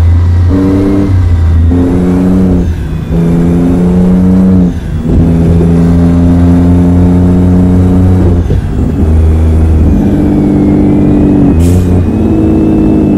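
A heavy truck engine rumbles and shifts through gears.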